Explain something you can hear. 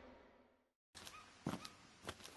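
High-heeled boots click on hard pavement in steady steps.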